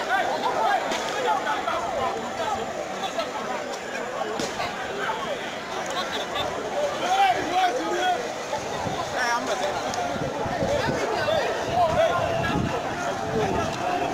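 A crowd of young people shouts and chatters outdoors.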